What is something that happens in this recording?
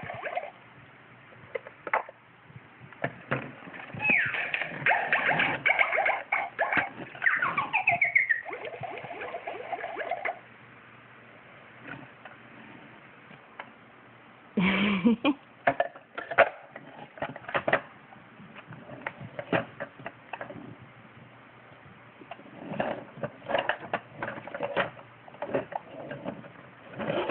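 A plastic toy clatters and knocks as it rolls and is pushed about.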